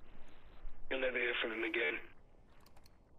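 A man speaks calmly over a phone call.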